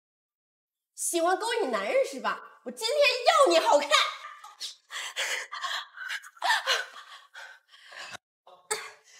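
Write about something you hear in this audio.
A woman shouts angrily up close.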